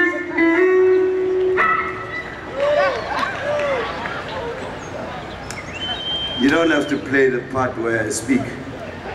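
A live band plays loudly outdoors through loudspeakers.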